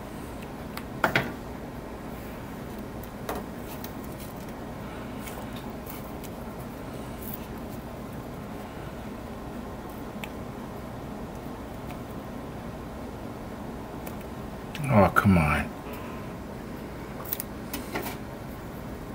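Hands knock and rustle against a plastic model.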